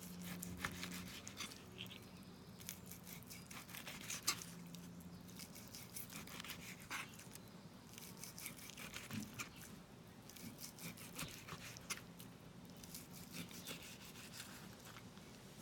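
A knife blade taps against a wooden board.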